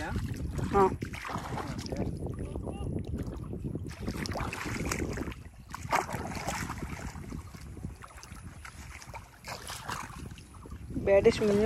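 Water splashes and sloshes as a net is dragged through shallow water.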